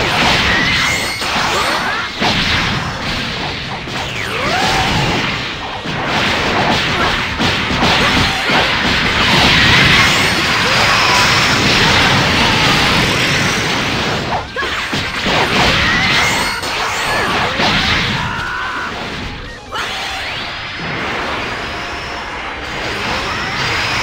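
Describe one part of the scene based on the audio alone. Video game blasts and explosions boom and crackle.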